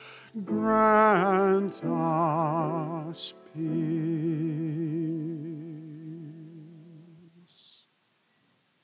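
A man sings through a microphone in a large echoing hall.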